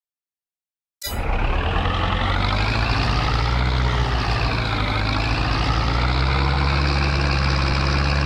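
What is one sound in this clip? A tractor engine hums steadily as it pulls a trailer.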